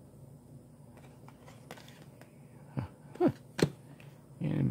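Stiff paper cards slide and flick against each other in hands.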